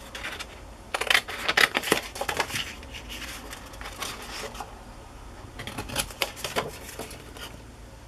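Scissors snip through cardboard.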